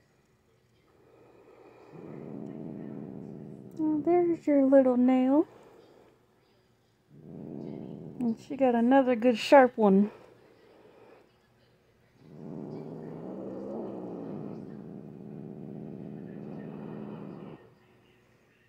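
A cat purrs loudly and steadily close by.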